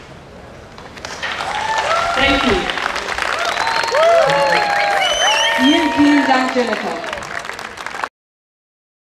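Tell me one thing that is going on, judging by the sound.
A large outdoor crowd cheers and whistles.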